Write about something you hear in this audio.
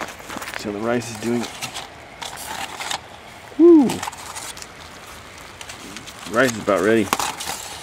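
Aluminium foil crinkles under a hand.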